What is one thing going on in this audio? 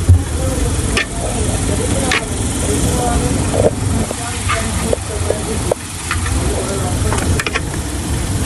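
A hand bumps against a plastic drum.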